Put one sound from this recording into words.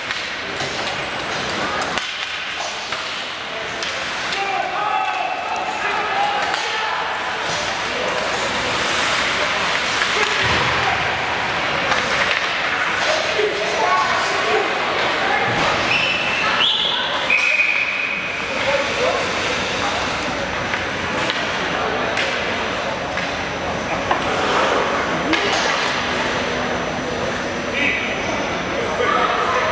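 Spectators chatter nearby in a large echoing arena.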